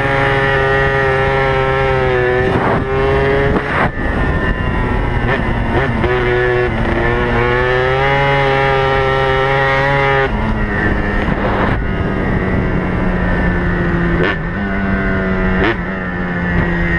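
A quad bike engine revs loudly and changes pitch close by.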